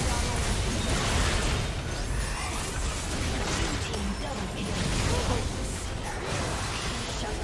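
Game spell effects whoosh and crackle in quick bursts.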